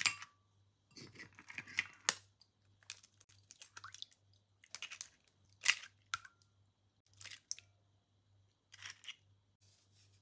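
Eggshells crack against the edge of a glass bowl.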